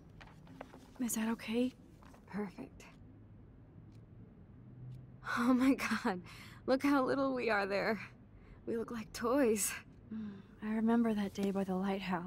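A young woman speaks excitedly and warmly, close by.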